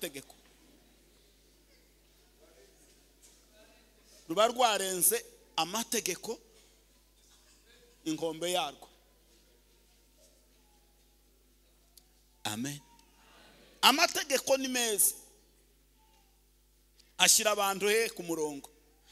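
A man preaches forcefully into a microphone in bursts, with pauses between, in a large echoing hall.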